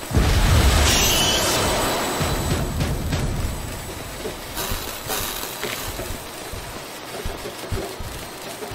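A blade slashes and clangs in bursts of combat.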